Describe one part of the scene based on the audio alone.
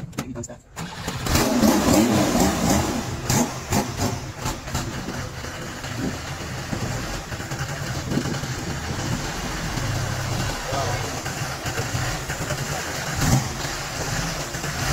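A vehicle engine starts and idles with a steady low rumble.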